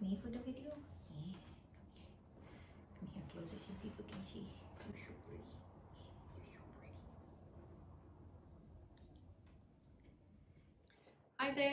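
Fingernails scratch softly through a cat's fur.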